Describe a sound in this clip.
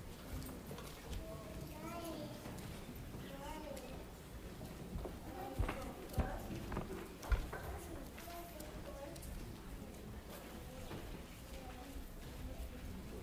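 A middle-aged man speaks calmly in a large echoing hall.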